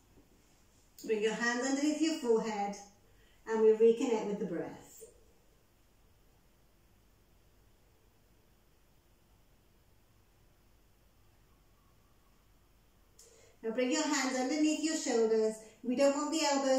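A woman speaks calmly and close, in short phrases with long pauses.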